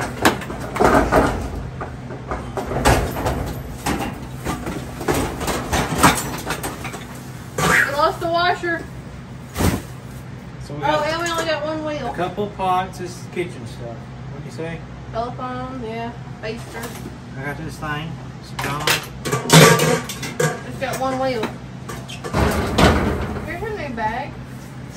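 Items clatter and knock as they are shifted about.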